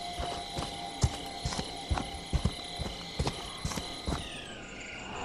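Heavy footsteps thud on soft ground at a steady pace.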